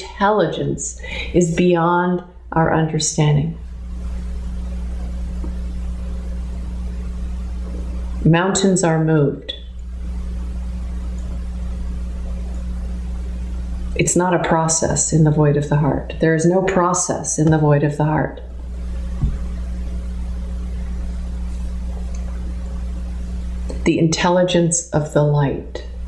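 A middle-aged woman speaks calmly and earnestly, close to a microphone, in bursts with pauses.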